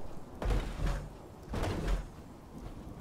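Heavy footsteps in power armor thud on the ground.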